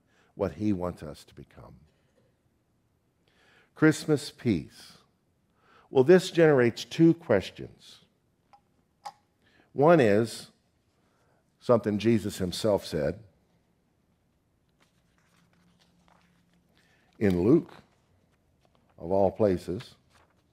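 A middle-aged man speaks calmly into a microphone, pausing often.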